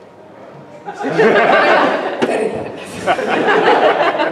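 Several men and women laugh loudly.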